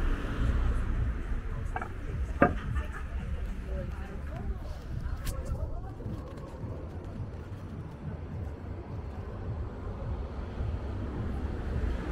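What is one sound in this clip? Men and women chat quietly outdoors a short distance away.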